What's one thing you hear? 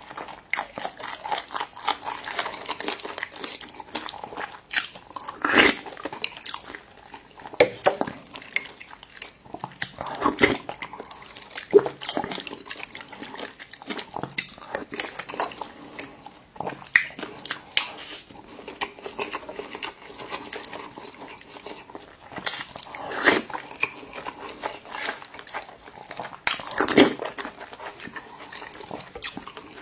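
A man chews food wetly and smacks his lips close to a microphone.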